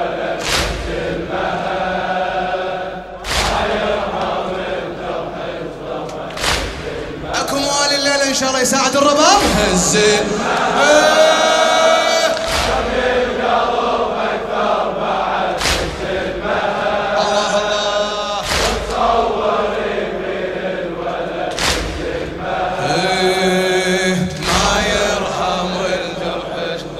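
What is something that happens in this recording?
A man chants loudly through a microphone in a large echoing hall.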